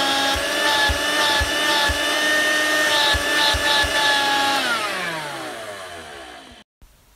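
A vacuum cleaner motor whines steadily, then winds down after being switched off.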